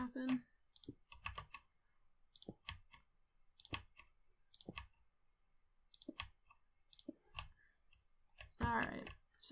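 Footsteps tap on hard stone at an even pace.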